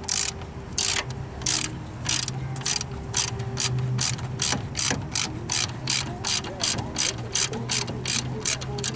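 A ratchet wrench clicks in quick repeated bursts as it turns a bolt.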